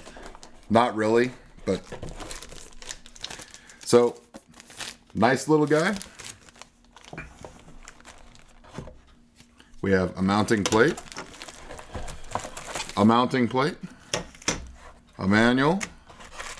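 Cardboard and plastic wrapping rustle as a box is unpacked.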